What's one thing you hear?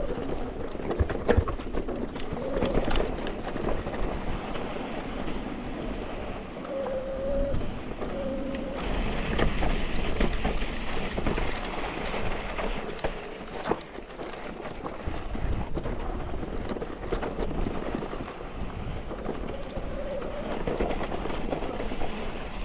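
Bike tyres crunch and rattle over a rocky dirt trail.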